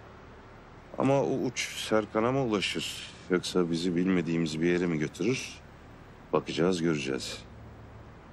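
An older man answers in a gruff voice.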